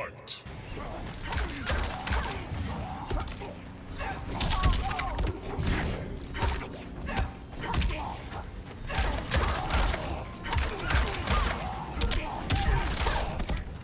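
A fighter grunts and shouts with each attack.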